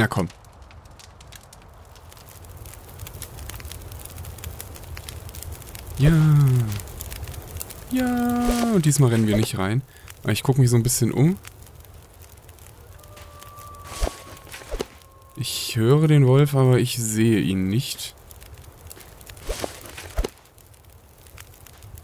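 A campfire crackles and hisses softly.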